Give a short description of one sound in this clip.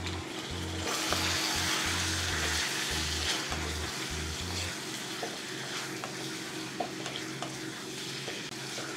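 A wooden spatula scrapes and knocks against a metal pan.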